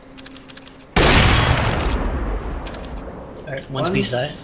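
A sniper rifle fires a single loud, echoing shot.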